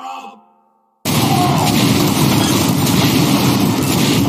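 A heavy machine gun fires in a rapid, continuous burst.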